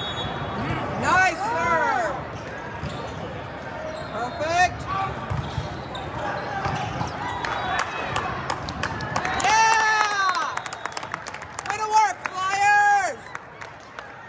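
Young players shout and cheer loudly.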